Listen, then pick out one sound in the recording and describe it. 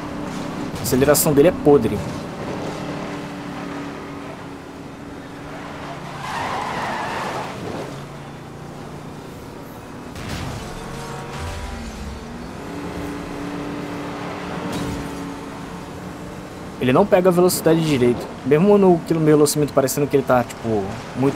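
A car engine roars steadily at speed.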